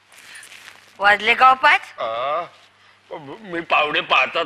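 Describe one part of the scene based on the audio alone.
An elderly woman speaks loudly and anxiously close by.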